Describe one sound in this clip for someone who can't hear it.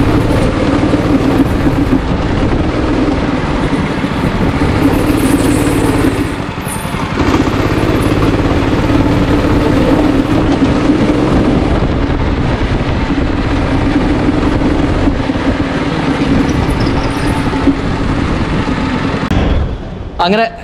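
A go-kart engine buzzes loudly and steadily as the kart speeds around.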